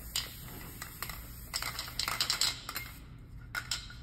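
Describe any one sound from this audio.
A caulking gun clicks and squeaks.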